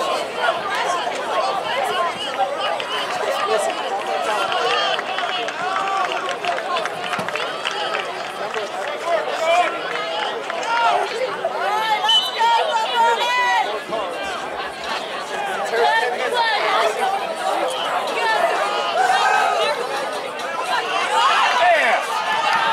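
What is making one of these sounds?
A crowd of spectators cheers and shouts nearby outdoors.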